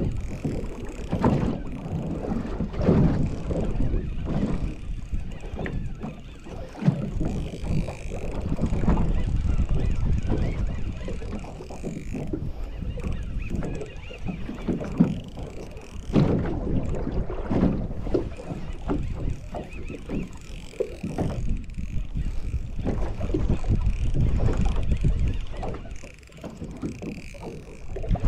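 A fishing reel clicks and whirs as it is cranked.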